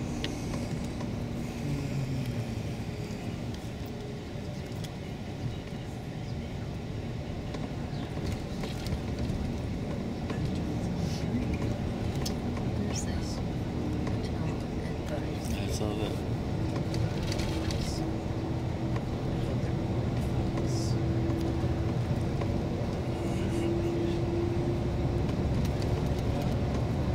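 An engine and tyres rumble from inside a shuttle bus travelling at speed on a highway.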